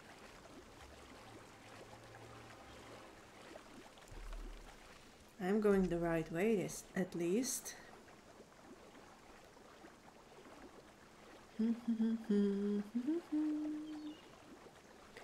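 Water splashes as a swimmer paddles through it.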